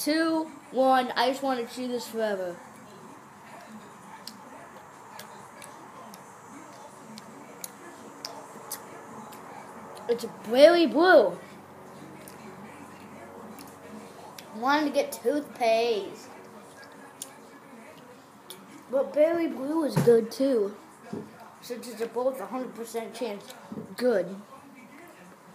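A boy speaks close to the microphone in short bursts, with pauses between.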